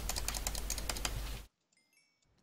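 A sword strikes a grunting creature.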